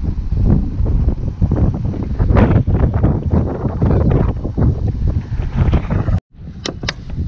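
Wind blows into the microphone outdoors.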